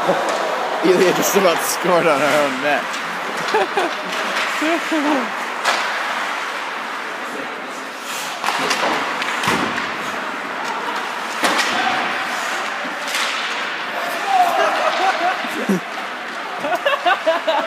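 Skates scrape and hiss across ice in a large echoing arena.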